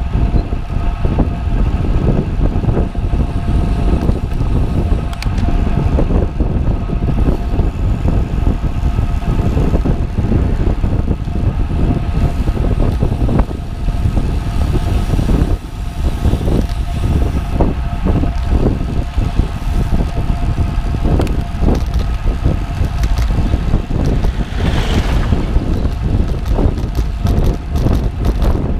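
Wind buffets loudly and steadily past the rider.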